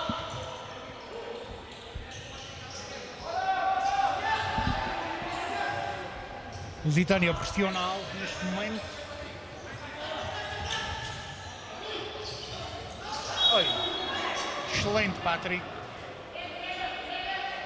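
Players' shoes squeak on a hard court in a large echoing hall.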